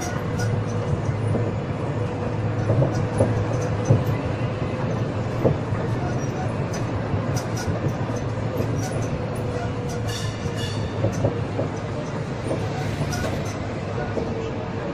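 A vehicle's engine rumbles steadily as it drives.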